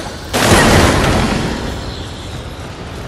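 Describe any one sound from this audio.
Fire crackles and whooshes with a burst of flame.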